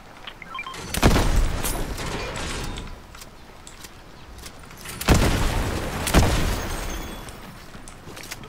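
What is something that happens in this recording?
Loud gunshots boom, followed by a rumbling echo.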